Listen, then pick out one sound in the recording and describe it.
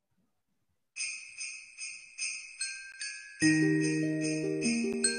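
Music with chiming bells plays through an online call.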